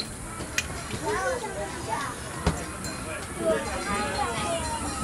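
Children chatter and call out excitedly nearby.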